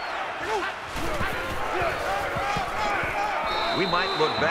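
Football players' pads thud and clash as they collide in a tackle.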